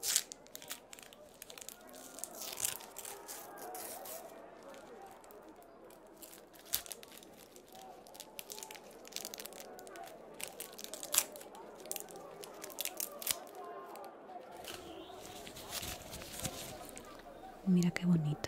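Plastic wrapping crinkles and rustles close up.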